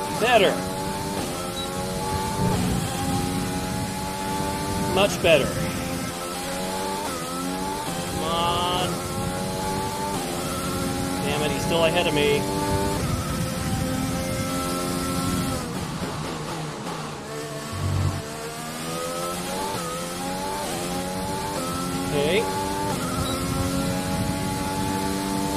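A racing car engine whines, rising and falling in pitch as gears shift.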